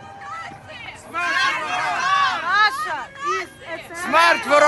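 A crowd of men and women chants and sings together loudly outdoors.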